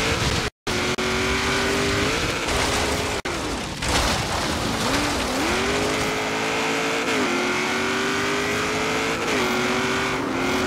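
A car engine roars at high revs, rising and falling as gears shift.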